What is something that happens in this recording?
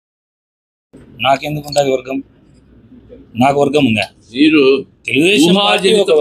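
A man speaks with animation into a nearby microphone.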